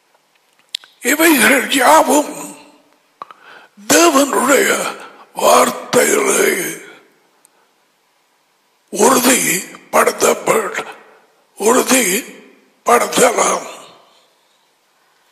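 An elderly man speaks calmly and deliberately into a headset microphone, in short phrases with pauses.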